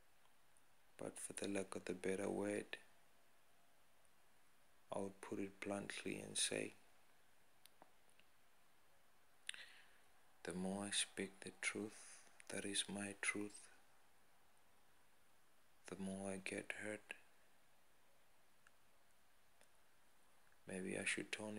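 A man speaks calmly, close up, in short bursts with pauses.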